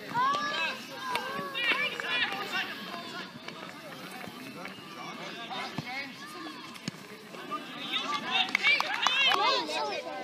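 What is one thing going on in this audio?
Adults on the sideline call out and cheer.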